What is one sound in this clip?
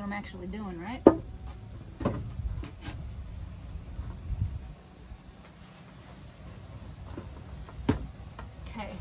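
Wooden boards knock and thud against each other.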